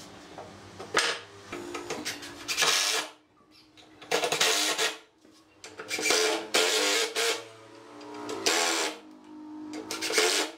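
A cordless impact driver whirs and rattles in short bursts.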